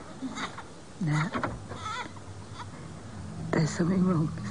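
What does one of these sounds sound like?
A young woman speaks softly and haltingly, close by.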